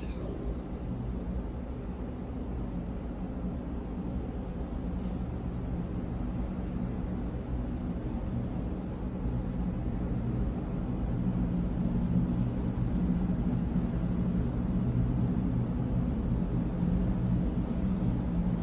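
Water rushes and churns along a ship's hull.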